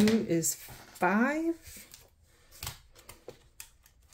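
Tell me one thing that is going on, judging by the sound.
A paper banknote rustles as a hand drops it onto a table.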